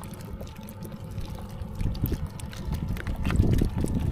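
Small fish rustle and slither as a hand stirs through them.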